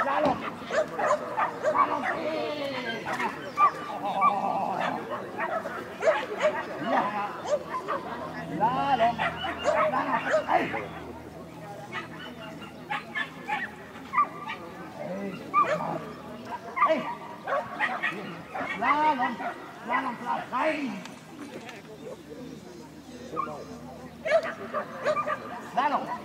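A dog barks and yelps excitedly.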